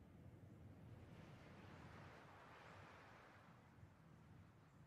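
Waves wash gently against a shore.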